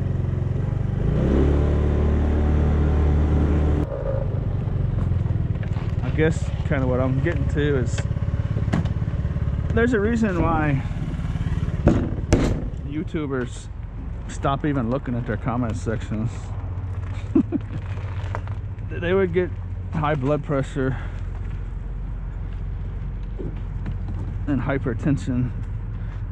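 A motorcycle engine idles with a steady low rumble close by.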